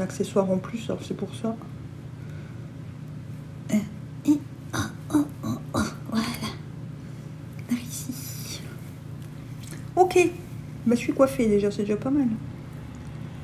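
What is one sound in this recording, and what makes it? A woman talks casually and close by.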